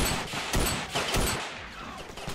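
Rifle shots crack loudly and echo.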